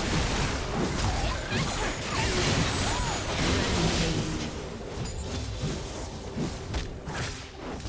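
Game spells burst and crackle in a fast, busy fight.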